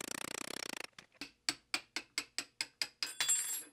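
A hammer taps repeatedly on metal.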